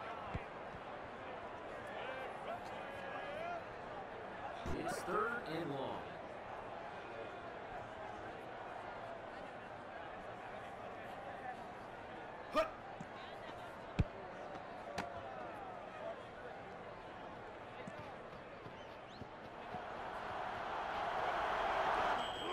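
A stadium crowd murmurs and cheers steadily, swelling louder near the end.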